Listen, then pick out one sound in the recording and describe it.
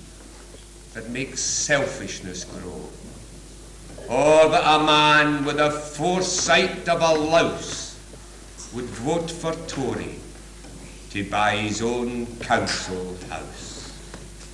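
A middle-aged man speaks calmly and thoughtfully, close by.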